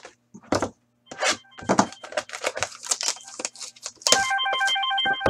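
A foil card pack crinkles and rustles in hands.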